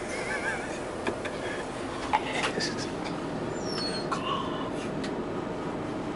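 Things rattle and knock inside the moving bus.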